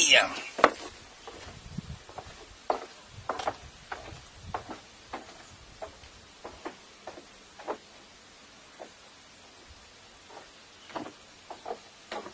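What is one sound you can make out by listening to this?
Bare feet pad on wooden boards as a man walks away.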